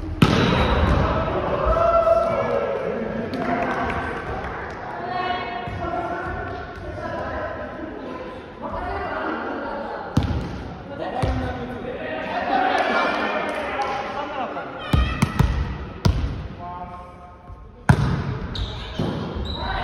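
Young men call out and shout to each other in a large echoing gym.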